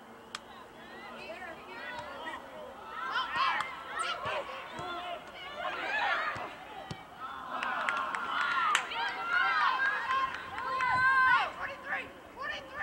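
Young women shout and call out excitedly across an open field.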